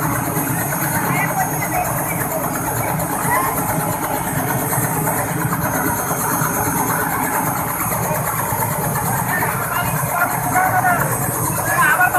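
Men shout to each other nearby.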